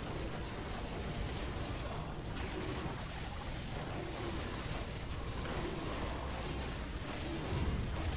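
Game battle effects zap and clash without pause.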